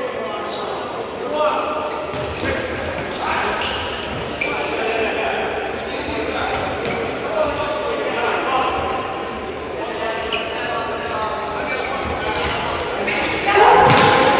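A futsal ball is kicked on an indoor court in a large echoing hall.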